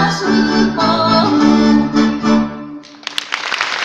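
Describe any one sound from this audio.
A band plays lively string music through loudspeakers in a hall.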